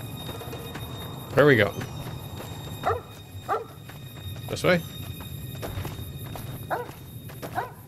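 Footsteps crunch on dry gravel.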